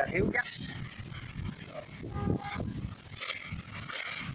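A metal wrench clinks against a scooter part.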